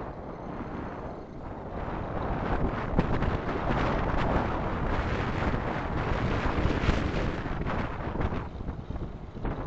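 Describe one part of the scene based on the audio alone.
Tyres crunch and rattle over loose gravel at speed.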